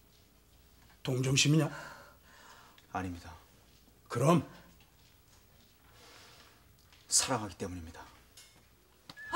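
A middle-aged woman speaks with emotion, close by.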